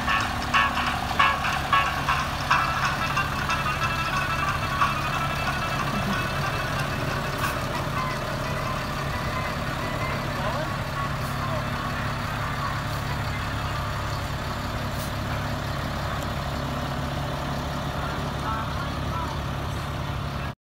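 A large engine idles nearby with a steady low rumble.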